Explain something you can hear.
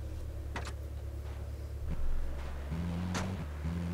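A vehicle door opens and shuts with a thud.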